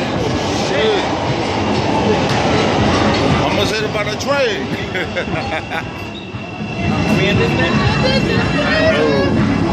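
A subway train rumbles and clatters past close by.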